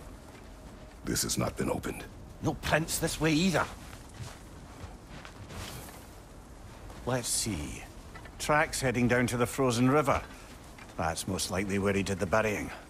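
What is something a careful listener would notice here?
A man with a deep voice speaks calmly.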